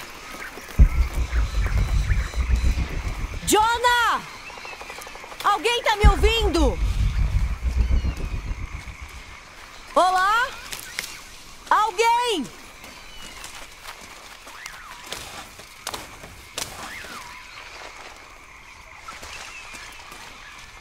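Leaves rustle as someone pushes through dense undergrowth.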